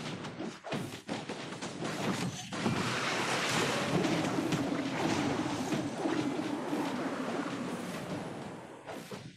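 Game battle effects clash and explode with magical blasts.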